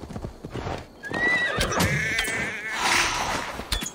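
A goat bleats.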